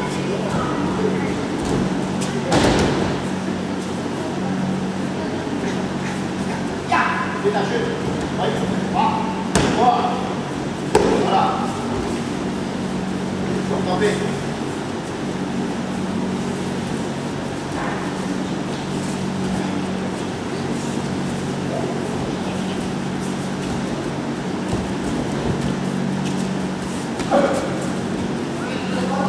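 Bodies thump and roll on a padded mat.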